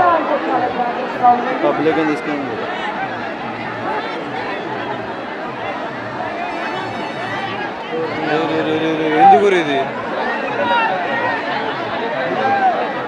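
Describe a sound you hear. A large crowd of young men shouts and cheers loudly outdoors.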